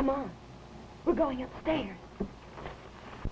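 A woman speaks urgently, close by.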